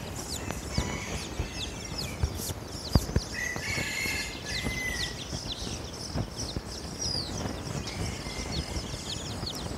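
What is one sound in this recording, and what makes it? A hen clucks softly.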